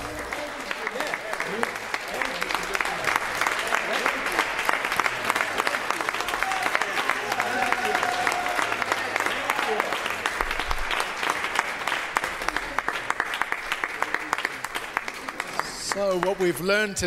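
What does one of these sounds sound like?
A crowd claps along steadily in a large room.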